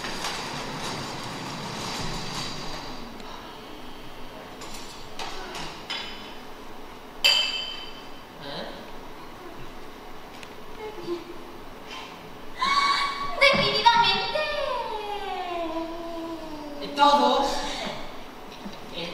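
A young woman speaks with animation, heard from a distance in a large echoing hall.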